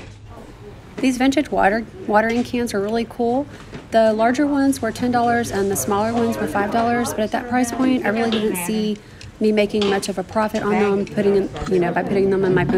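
A woman talks close to the microphone.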